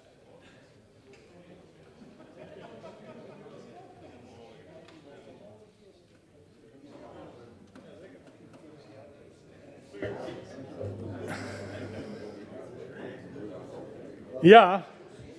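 A group of people murmur and chat in the room.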